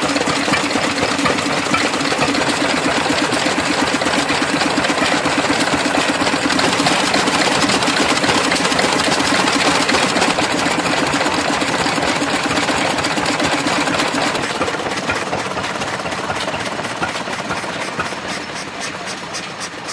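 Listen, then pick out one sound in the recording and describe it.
Old stationary engines chug and pop rapidly and steadily, loud and close.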